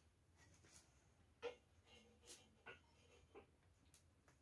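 Metal parts of a stove click and clank.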